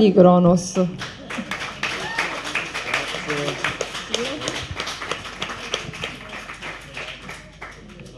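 People applaud steadily.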